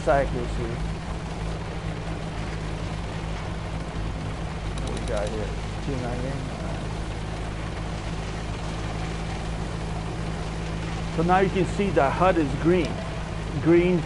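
A tank engine rumbles steadily as the tank drives over rough ground.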